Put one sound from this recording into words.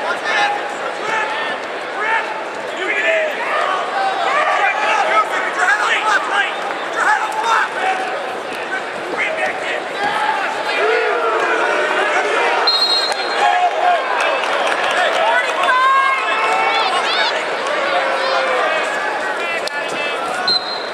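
A large crowd cheers and shouts throughout a big echoing arena.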